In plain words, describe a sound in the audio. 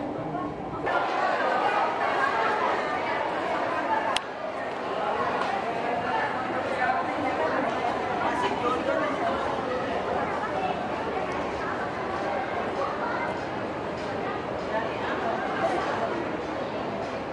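A crowd murmurs and chatters in an echoing hall.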